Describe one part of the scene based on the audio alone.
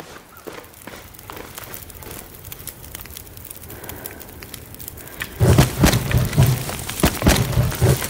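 A fire crackles and pops.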